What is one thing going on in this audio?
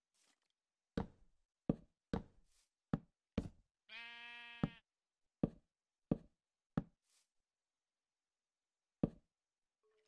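Wooden blocks are placed with short, hollow thuds at an uneven pace.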